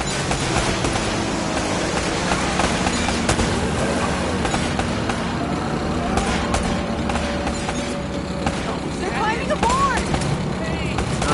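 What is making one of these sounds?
Ocean waves wash and splash steadily.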